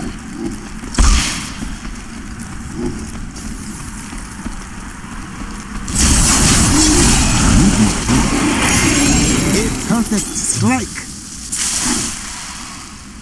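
Magic blasts and crackling effects burst in a fast fantasy battle.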